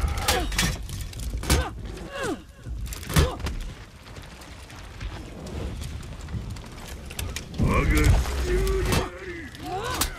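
Metal weapons clash and strike in a fight.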